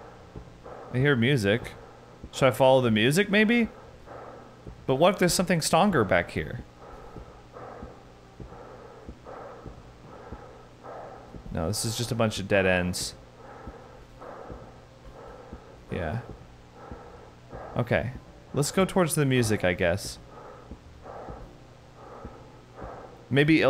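A young man speaks in short, animated bursts close to a microphone.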